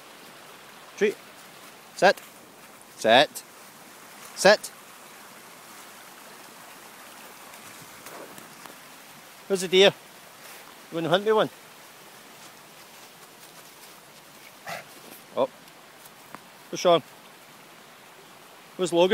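A dog whines and yelps in short high cries, close by.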